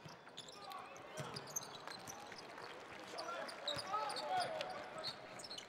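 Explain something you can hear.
Sneakers squeak on a hardwood court in a large echoing arena.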